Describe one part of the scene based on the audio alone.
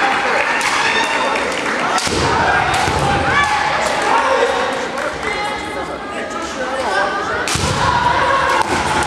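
Fighters shout sharp, loud cries in a large echoing hall.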